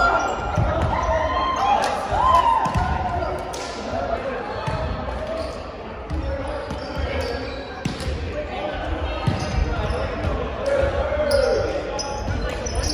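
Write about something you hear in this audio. Young men talk and call out to each other in a large echoing gym.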